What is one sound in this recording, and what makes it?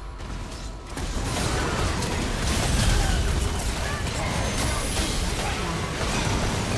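Magic spells whoosh and crash in a fight.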